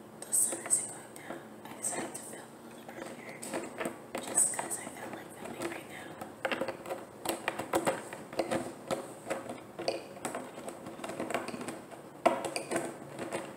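A bottle cap is twisted on a plastic jug.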